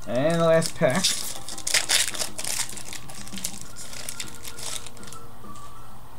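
A foil card wrapper crinkles and tears in someone's hands.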